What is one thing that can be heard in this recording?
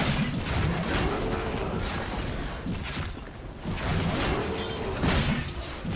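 Fantasy spell effects whoosh and crackle in a fight.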